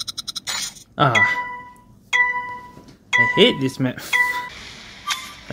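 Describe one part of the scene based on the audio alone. A countdown beeps once a second with a high steady tone.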